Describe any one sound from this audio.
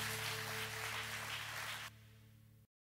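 A guitar plays through loudspeakers.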